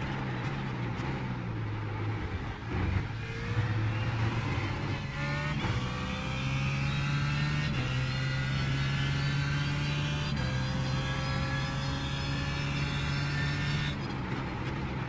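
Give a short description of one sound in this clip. A racing car engine roars, climbing in pitch through the gears and dropping sharply at each shift.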